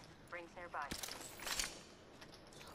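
Gear is picked up with a short metallic clatter.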